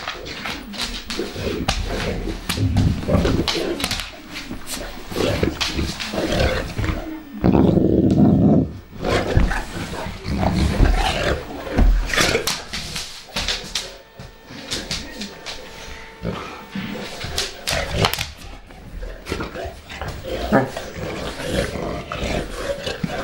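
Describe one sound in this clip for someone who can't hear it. Dog paws and bodies thump and scuffle on the floor.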